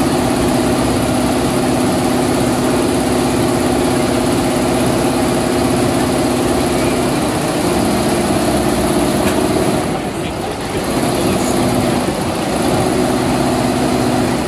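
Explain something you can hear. Rows of embroidery machines hum and rattle steadily as their needles stitch.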